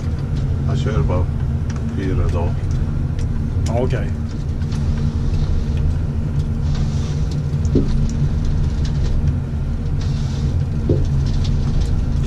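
A heavy diesel engine drones steadily from inside a machine cab.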